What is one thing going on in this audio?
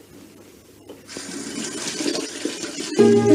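Water runs from a tap with a steady hiss.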